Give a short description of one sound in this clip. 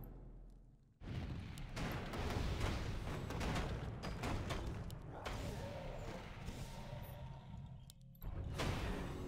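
Spells and weapons clash in a game battle.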